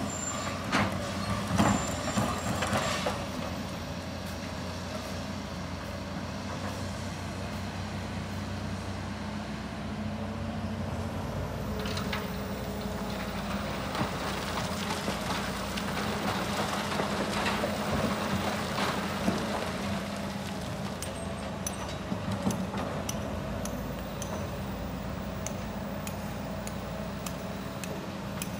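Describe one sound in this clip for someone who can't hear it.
Excavator engines hum steadily outdoors.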